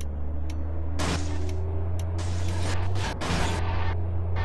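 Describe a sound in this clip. A truck crashes with a loud bang.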